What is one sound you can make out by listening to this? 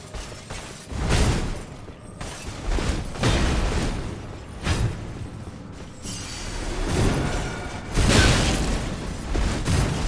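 Heavy weapon blows crash and thud in loud bursts.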